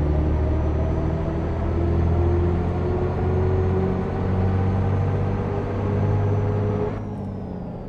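A bus engine drones steadily, then drops quieter near the end.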